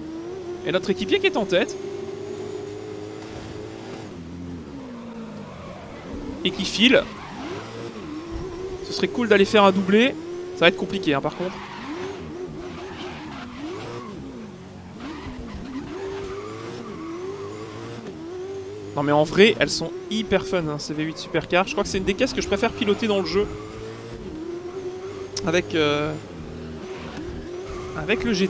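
A racing car engine roars steadily, its pitch rising and falling with the gear changes.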